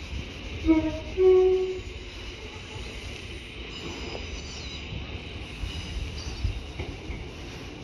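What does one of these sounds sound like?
A diesel railcar approaches in the distance.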